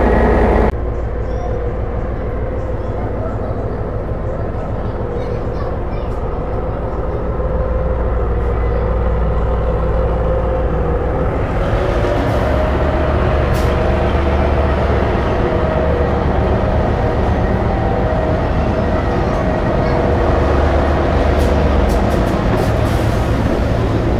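A train rumbles and hums steadily as it rolls slowly along a platform.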